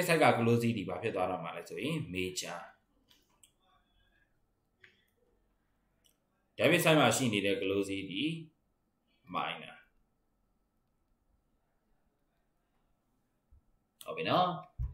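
A man lectures calmly into a close microphone, pausing between phrases.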